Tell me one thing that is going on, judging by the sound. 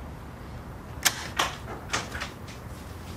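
A door handle clicks and rattles.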